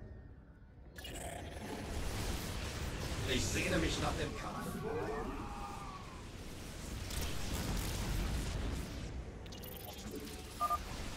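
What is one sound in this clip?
Sci-fi energy weapons fire in rapid bursts.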